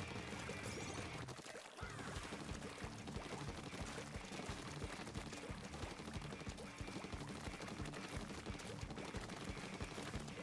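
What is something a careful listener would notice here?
Paint sprays and splatters wetly in quick bursts.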